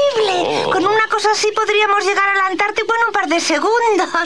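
A cartoon character speaks in a high, surprised voice.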